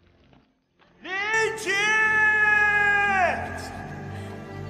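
A young man shouts loudly outdoors.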